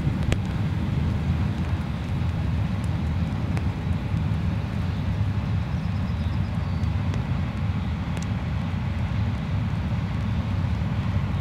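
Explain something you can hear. A long freight train rumbles steadily along the track in the distance.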